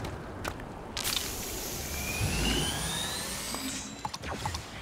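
A spray hisses in short bursts.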